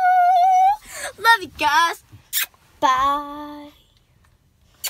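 A young girl sings and squeals playfully close by.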